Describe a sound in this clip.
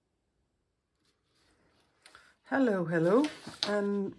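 A hardback book is set down on a table with a soft thud.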